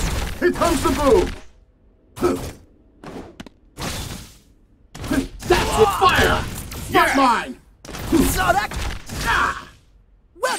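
An energy beam blasts with a loud crackling roar.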